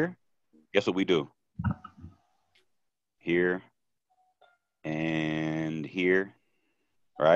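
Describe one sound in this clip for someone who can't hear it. A man talks with animation close to a microphone, with short pauses.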